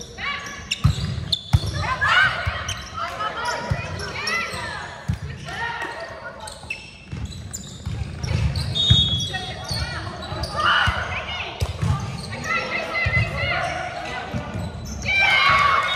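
Young women call out and shout to each other in a large echoing hall.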